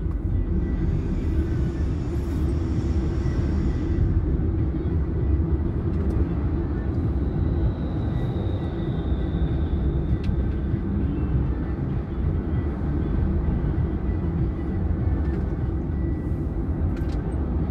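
A car engine hums steadily from inside the car as it moves slowly through traffic.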